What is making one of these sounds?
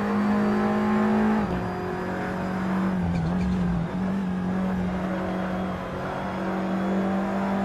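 A racing car engine roars steadily, dropping in pitch as it shifts gears.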